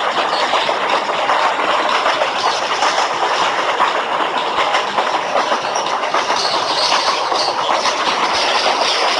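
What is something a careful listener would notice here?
Train wheels clatter along the rails.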